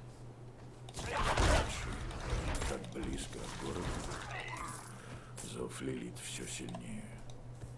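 Blows and spell blasts clash in a fight.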